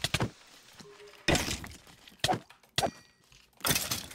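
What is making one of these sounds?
Sword blows strike a creature in quick succession.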